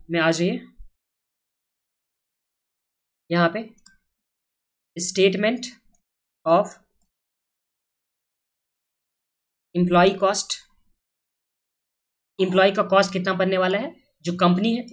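A young man speaks calmly into a close microphone, in short phrases with pauses.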